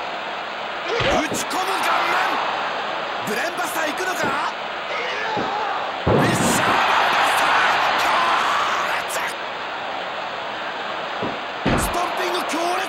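Heavy thuds sound as bodies hit a wrestling mat.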